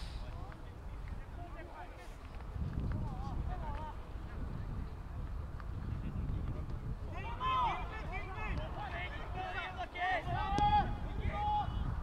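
Players shout and call out to each other across an open field.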